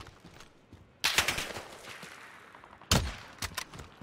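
A rifle fires sharp, loud shots with an echo.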